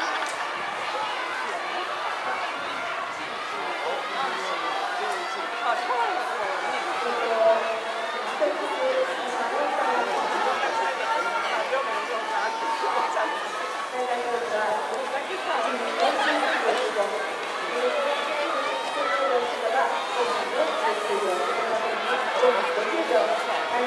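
A crowd of spectators chatters and calls out in open stands outdoors.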